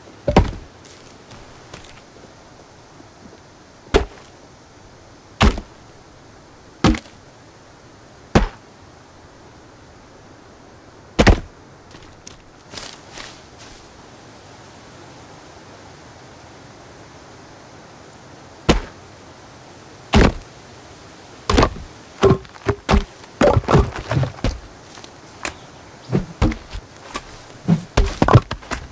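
Heavy wooden logs thud into place one after another.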